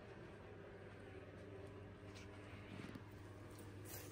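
A cat rustles inside a fabric tunnel.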